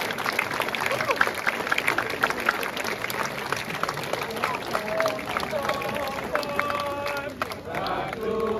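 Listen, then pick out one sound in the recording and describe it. A large group of men chants rhythmically together.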